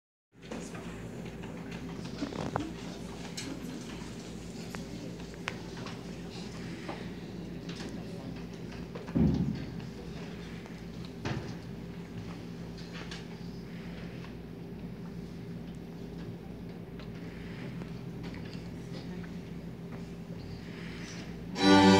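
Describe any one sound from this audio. A student orchestra plays a sustained, steady passage on string instruments in a large echoing room.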